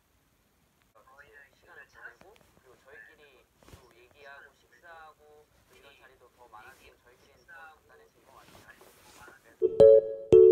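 A young man speaks calmly through speakers.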